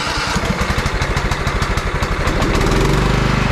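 A small engine's starter cranks rapidly.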